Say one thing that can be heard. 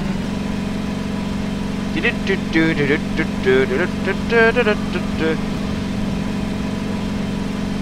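A buggy engine drones steadily as the buggy drives along.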